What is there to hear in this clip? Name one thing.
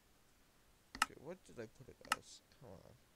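A menu button clicks a few times.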